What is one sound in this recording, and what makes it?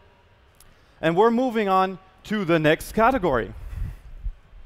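A man speaks with animation through a microphone in a large hall.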